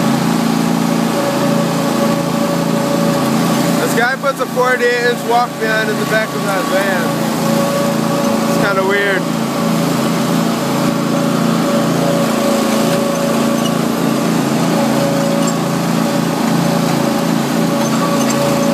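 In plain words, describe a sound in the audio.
A small engine drones steadily close by.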